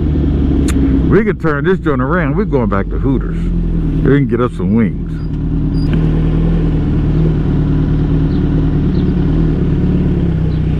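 A Suzuki Hayabusa inline-four sportbike engine hums as the motorcycle cruises at low speed.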